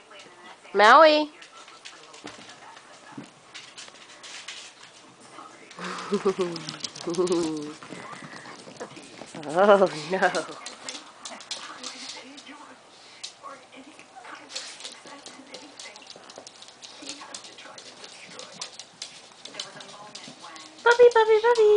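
Small dogs bark and yelp excitedly.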